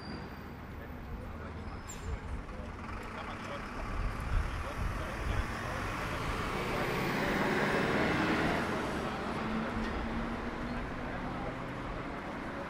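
Distant city traffic rumbles steadily outdoors.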